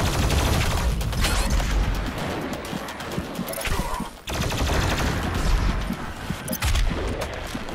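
A heavy gun fires rapid booming shots.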